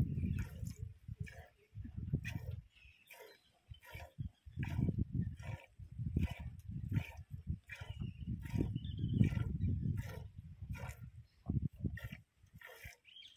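Milk squirts into a metal pail in a steady rhythm.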